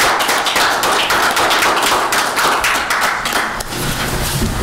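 A small group of people applauds in a room.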